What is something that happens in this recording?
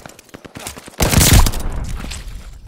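A loud blast booms nearby.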